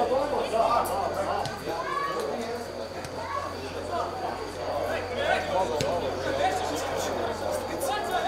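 A ball is kicked with a dull thud outdoors.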